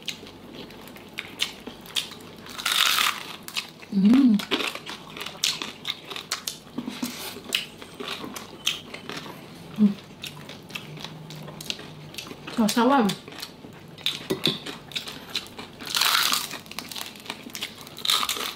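Crispy fried food crunches loudly as it is bitten and chewed close up.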